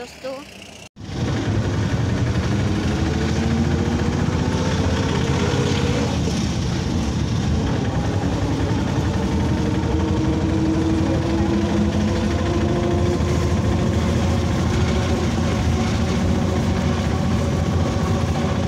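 A vehicle engine drones steadily while driving along a road.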